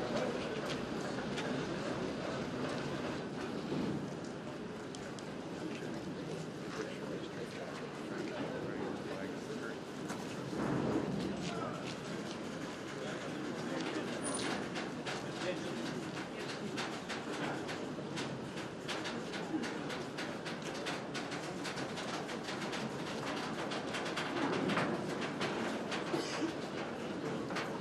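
Metal wheels clack and creak on rails.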